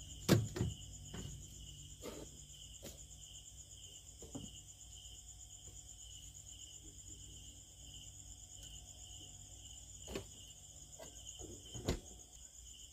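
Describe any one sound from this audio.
Plastic fridge parts click and knock under a hand.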